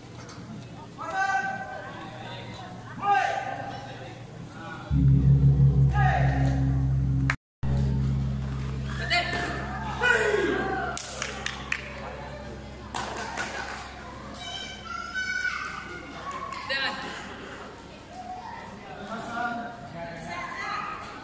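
Men shout sharply in a large echoing hall.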